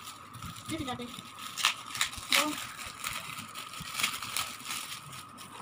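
Shiny foil wrapping crinkles and rustles in a woman's hands.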